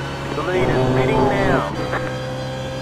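A racing car engine briefly revs up and down.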